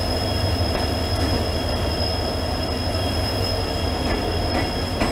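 Train wheels clatter on the rails.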